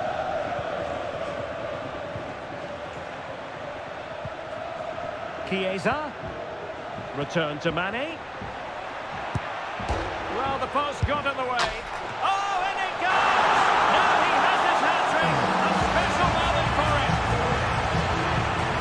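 A stadium crowd murmurs, then roars loudly.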